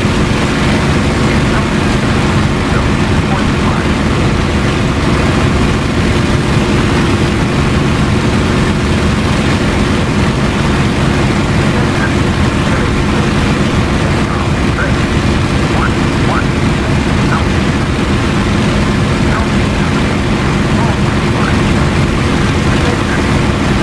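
Wind rushes steadily past the cockpit.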